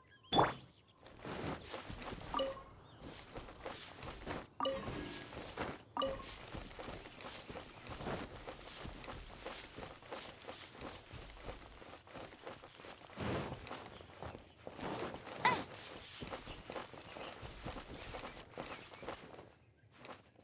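Quick footsteps run through rustling grass.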